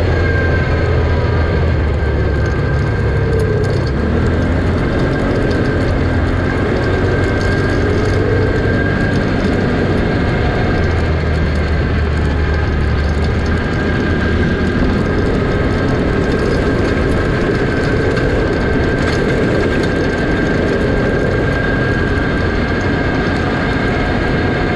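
Tyres crunch and rattle over rough dirt.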